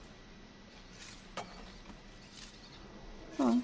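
Hands scrape and grip on a stone wall.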